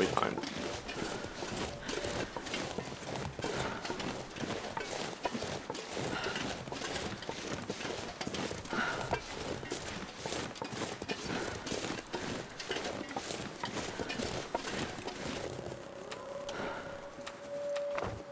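A middle-aged man talks steadily and casually into a close microphone.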